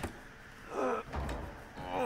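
A heavy wooden door is pushed open.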